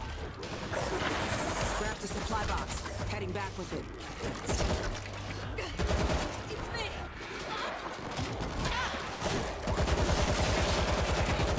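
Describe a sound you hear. Zombies snarl and growl up close.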